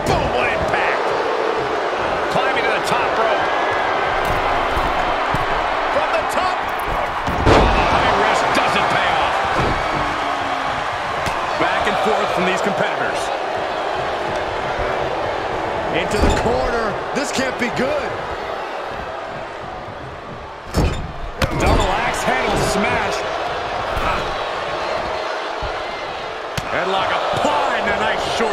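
A large crowd cheers and roars steadily in a big arena.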